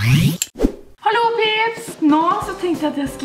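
A young woman speaks with animation, close to the microphone.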